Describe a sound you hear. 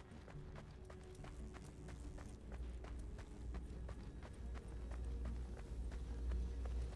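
Footsteps patter quickly on grass as a game character runs.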